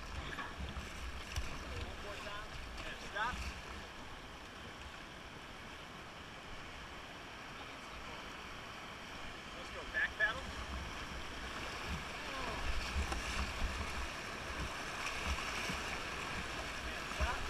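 River rapids rush and splash steadily outdoors.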